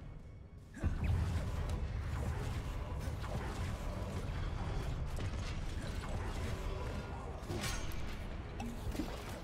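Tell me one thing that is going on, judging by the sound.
Magic spells crackle and burst with electric zaps.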